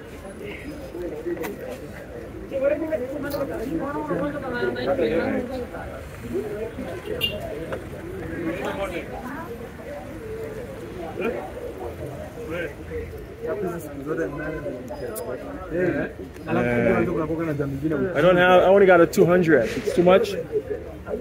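Young men talk with animation close by, outdoors.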